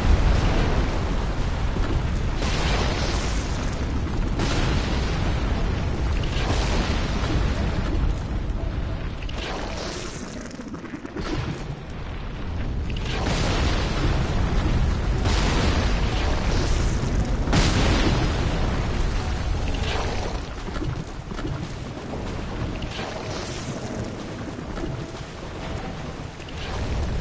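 Heavy footsteps splash through shallow water.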